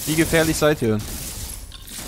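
A weapon fires energy blasts.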